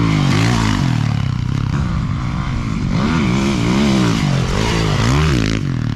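Another dirt bike engine whines nearby as it races and jumps.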